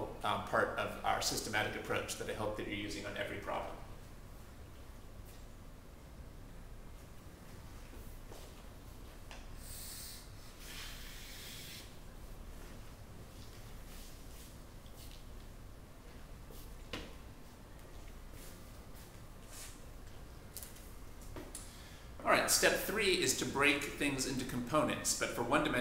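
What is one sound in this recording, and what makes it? A man speaks calmly, as if teaching, close by.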